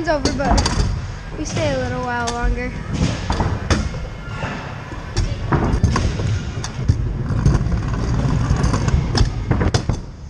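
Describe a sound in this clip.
Wheels roll and rumble over wooden ramps.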